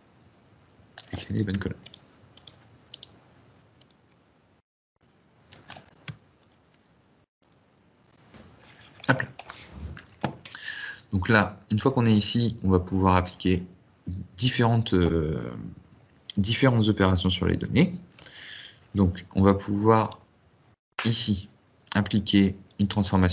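A young man talks calmly and close to a microphone, with pauses.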